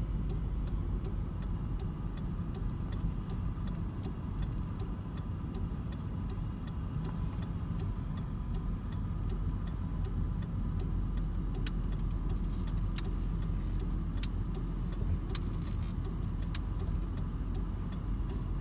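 A car engine hums steadily from inside the car as it drives slowly.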